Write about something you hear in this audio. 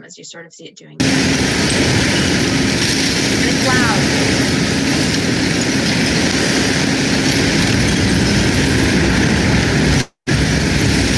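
A wheel loader's engine rumbles loudly and steadily.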